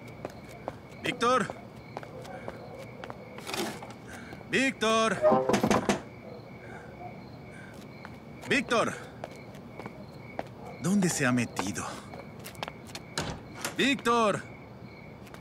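A young man calls out loudly several times nearby.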